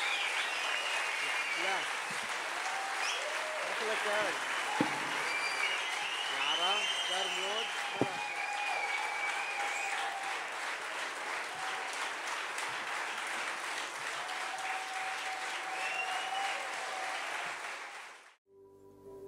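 A large crowd applauds loudly in an echoing space.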